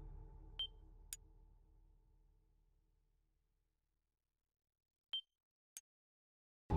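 Short electronic menu beeps click a few times.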